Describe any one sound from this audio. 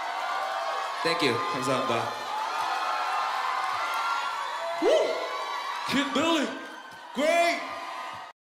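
A young man raps energetically into a microphone.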